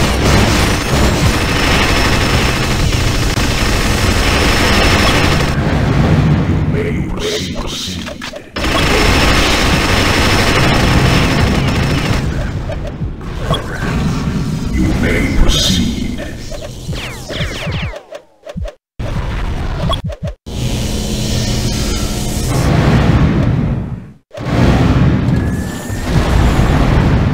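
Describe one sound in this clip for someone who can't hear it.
Fiery explosions burst with loud booms.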